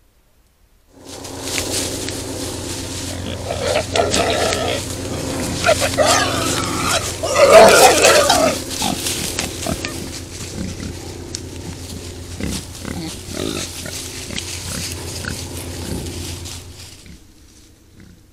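Wild boars rustle and snuffle through dry grass.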